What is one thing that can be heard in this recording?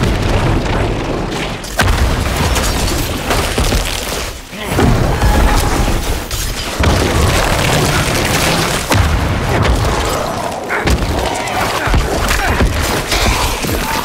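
Weapons clash and strike in a fast video game battle.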